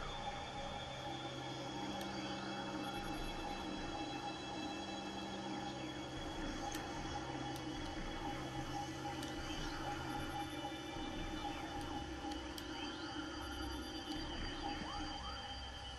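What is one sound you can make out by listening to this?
A steady electronic scanning drone hums.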